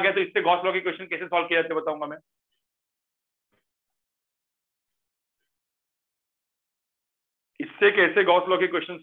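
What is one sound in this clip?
A man explains calmly, close to a microphone.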